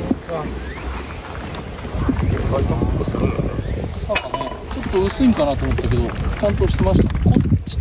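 Young men talk casually outdoors nearby.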